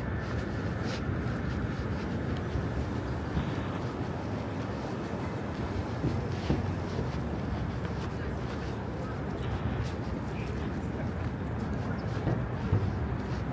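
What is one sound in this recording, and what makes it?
City traffic rumbles steadily outdoors.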